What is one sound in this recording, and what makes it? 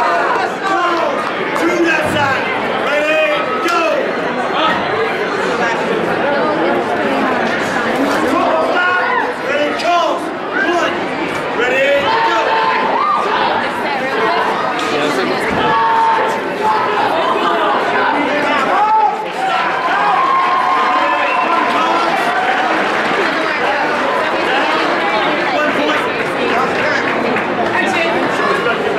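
A crowd of spectators chatters and cheers loudly in a large echoing hall.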